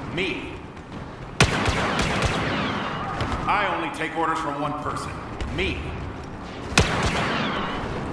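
Electronic laser blasts zip and whine.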